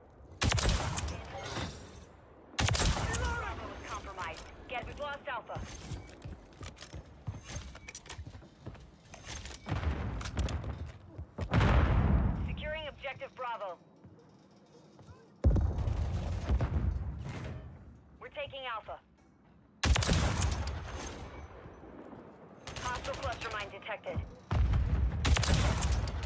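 A sniper rifle fires single shots, each with a loud echoing boom.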